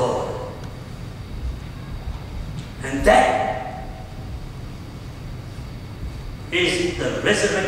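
A man preaches with emphasis into a microphone, his voice echoing in a large hall.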